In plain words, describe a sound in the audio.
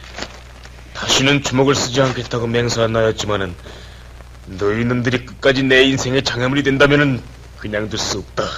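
A young man speaks loudly and urgently nearby.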